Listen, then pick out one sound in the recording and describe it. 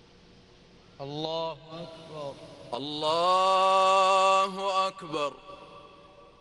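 A man chants a long, drawn-out call through loudspeakers, echoing across a large open space.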